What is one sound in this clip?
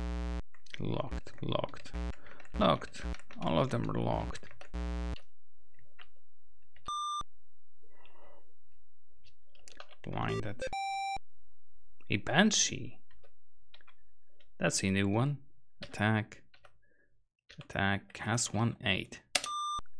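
Short electronic game beeps sound now and then.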